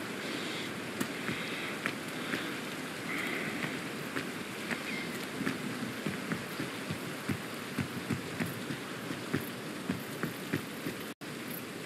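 Footsteps tap steadily on a hard road.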